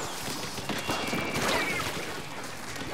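A loud splat bursts as a player is splatted.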